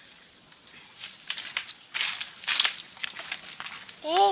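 Footsteps crunch on dry leaves and dirt.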